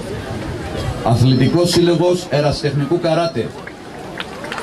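A man chants in a deep, steady voice.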